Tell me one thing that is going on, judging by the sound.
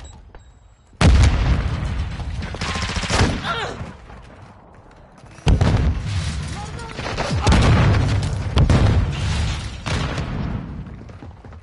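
Explosions boom loudly several times, each rumbling as it fades.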